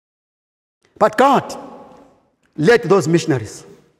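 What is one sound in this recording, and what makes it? A man preaches forcefully into a microphone in an echoing hall.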